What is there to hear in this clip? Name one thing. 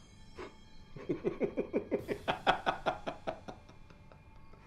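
A middle-aged man laughs heartily in short bursts, close by.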